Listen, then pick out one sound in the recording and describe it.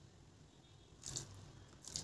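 Water pours into a simmering pot.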